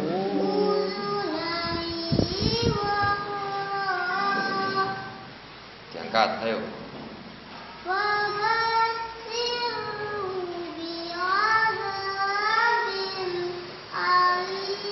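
A woman chants in a long, melodic voice close by.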